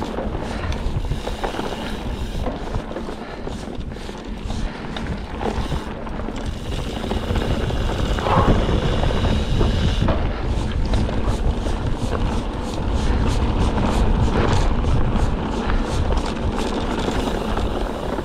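A bicycle frame clatters and rattles over bumps.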